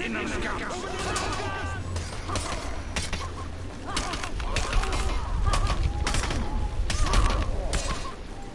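Swords clash and strike with sharp metallic clangs.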